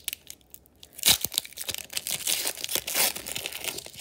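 A foil wrapper tears open.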